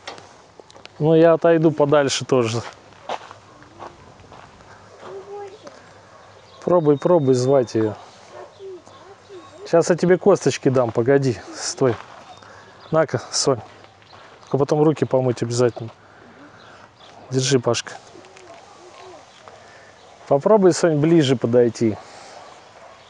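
A young girl speaks in short bursts close by, outdoors.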